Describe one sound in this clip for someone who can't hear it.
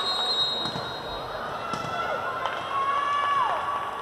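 A volleyball bounces on a hard floor.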